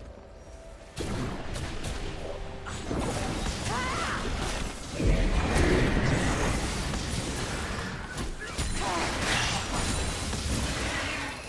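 Game characters clash with sharp impact hits.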